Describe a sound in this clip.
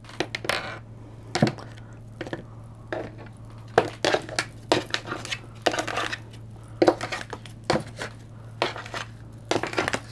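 Cards are laid down softly on a table.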